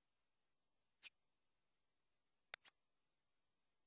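Short, sharp menu clicks sound, one on its own and then two close together.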